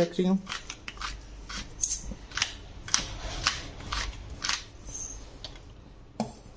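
A pepper grinder clicks and crunches as it grinds.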